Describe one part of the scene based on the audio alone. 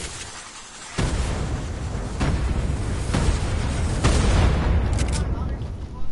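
Rockets explode with a deep roaring blast.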